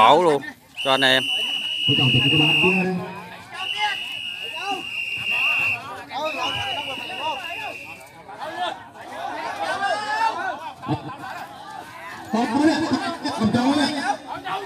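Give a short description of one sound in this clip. A crowd of men shout and cheer together outdoors.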